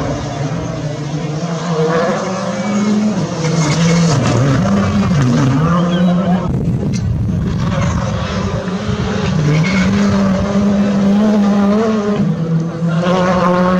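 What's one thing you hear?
Gravel sprays from tyres on a dirt road.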